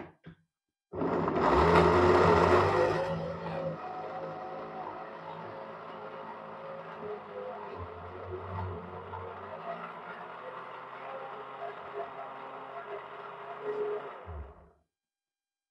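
A blender whirs loudly, then settles into a steady grinding hum.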